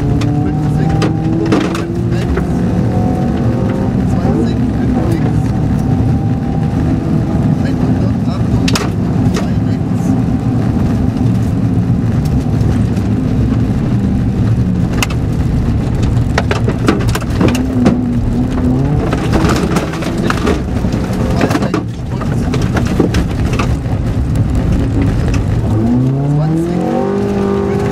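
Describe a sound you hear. Tyres crunch and rumble over a rough gravel road.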